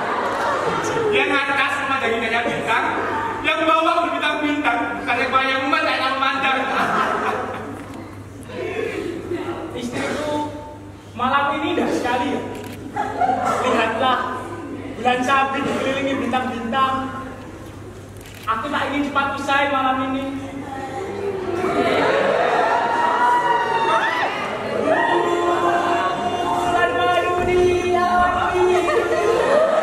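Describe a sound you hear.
A young man speaks with feeling on a stage, heard from a distance in an echoing hall.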